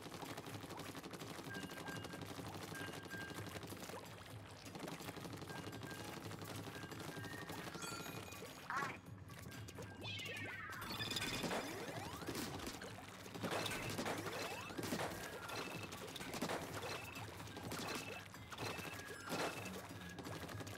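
Upbeat electronic game music plays steadily.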